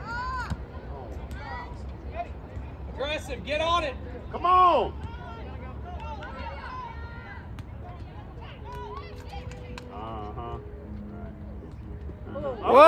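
Young women in a nearby crowd shout and cheer outdoors.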